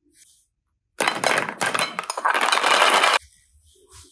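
Plastic toys clatter against each other in a glass bowl.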